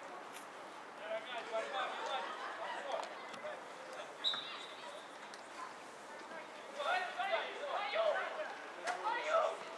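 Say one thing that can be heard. Players shout to one another in the distance across an open field.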